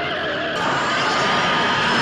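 Car tyres squeal as they spin on wet pavement.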